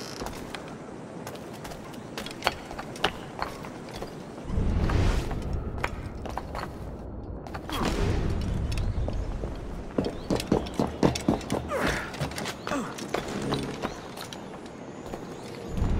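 Quick footsteps clatter over roof tiles.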